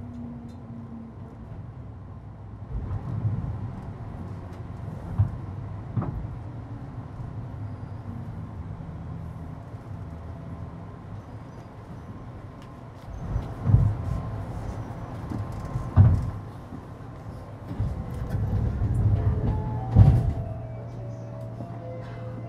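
A stopped electric train hums with a low, steady rumble.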